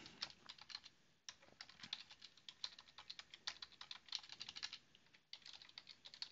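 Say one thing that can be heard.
Keys clatter in quick bursts of typing on a keyboard.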